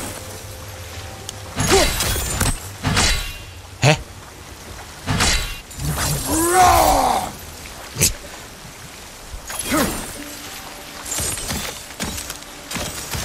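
Water gushes and splashes up from a basin.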